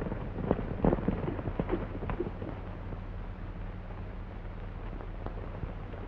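Horse hooves clop on dirt.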